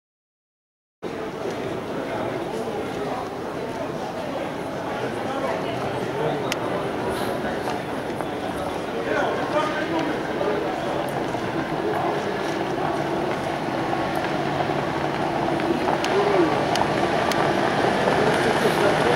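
Harness horses trot along a dirt track in the distance.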